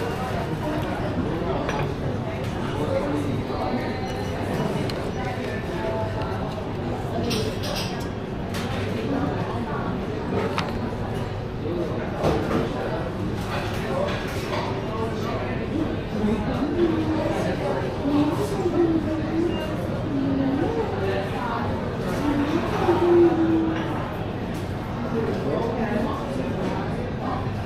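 A busy indoor hall hums with distant voices and clatter.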